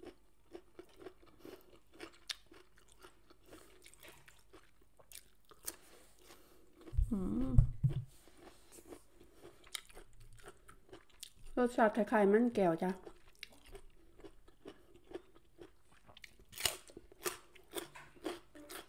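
A woman crunches and chews food close by.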